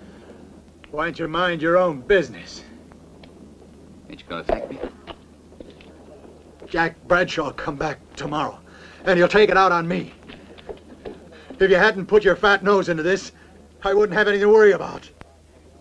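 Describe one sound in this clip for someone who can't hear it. A young man speaks calmly and firmly, close by.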